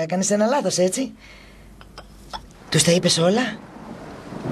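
A woman speaks softly and earnestly up close.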